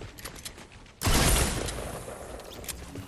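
A gun fires a single loud shot that rumbles away.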